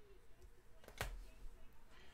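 A plastic card case taps on a table.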